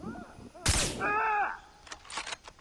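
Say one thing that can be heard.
An animal cries out in pain.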